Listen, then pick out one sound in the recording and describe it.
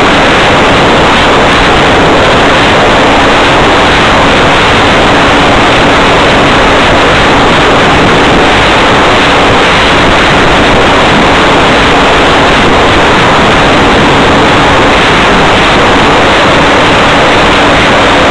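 Loud radio static hisses throughout.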